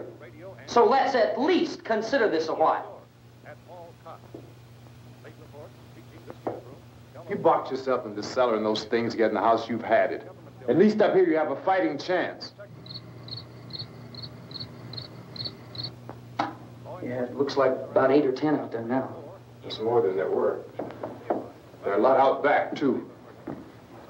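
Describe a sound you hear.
A man speaks firmly.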